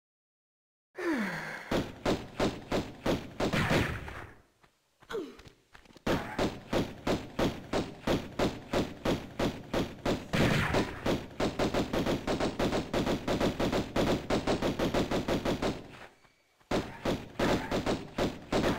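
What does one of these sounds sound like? Quick footsteps run on stone, echoing in a cave.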